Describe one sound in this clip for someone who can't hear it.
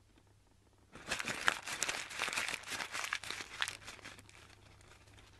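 Hands rustle a strip of cloth while wrapping it.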